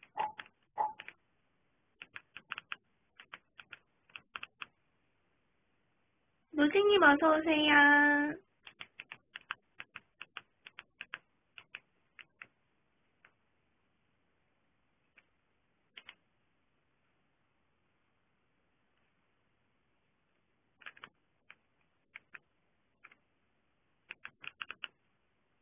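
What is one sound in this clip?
A young woman speaks softly and haltingly close to the microphone.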